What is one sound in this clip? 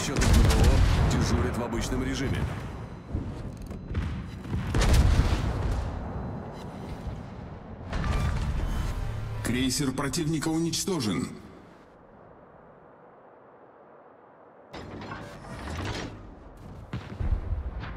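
Heavy ship guns fire with loud, deep booms.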